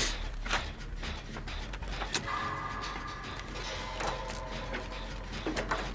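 A generator engine clanks and rattles close by.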